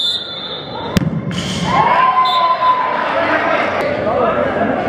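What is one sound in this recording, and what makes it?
A ball is kicked hard with a sharp thump.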